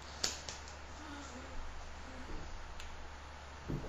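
A woman speaks softly close by.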